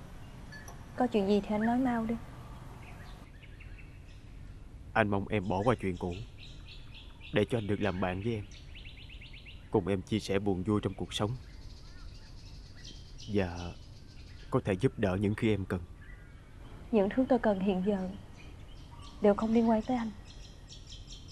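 A young woman speaks in a calm, firm voice, close by.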